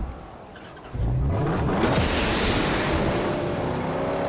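A car's booster blasts with a loud whoosh.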